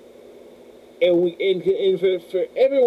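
A man speaks close to a microphone, with animation.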